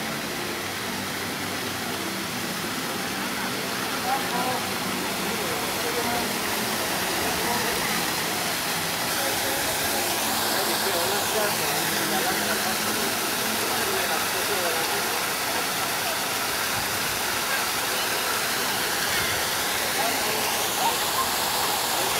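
Water splashes and gurgles steadily in a fountain.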